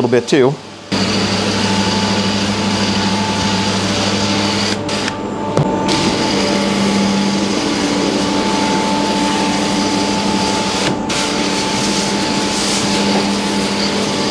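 A sprayer hisses steadily as it mists liquid onto carpet.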